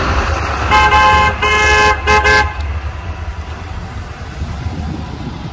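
A pickup truck drives slowly past.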